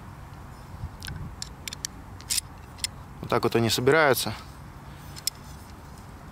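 Metal tent pole sections click and clink together.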